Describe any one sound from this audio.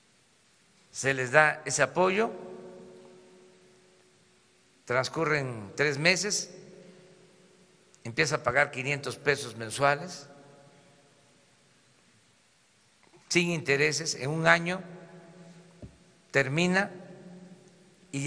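An elderly man speaks calmly in short phrases through a microphone in an echoing hall.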